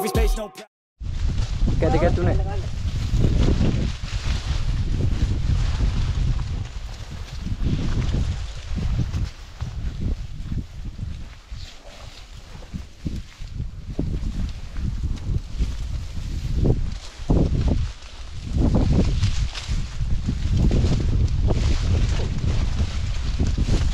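Leaves and stalks rustle and swish as people push through dense brush.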